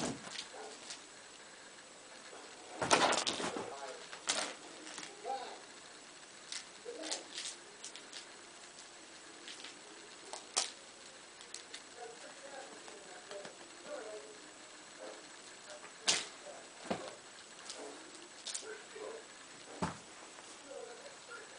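Bedding rustles as a cat wriggles on it.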